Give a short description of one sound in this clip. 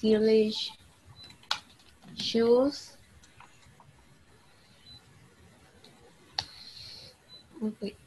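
A young man speaks briefly over an online call, in short bursts.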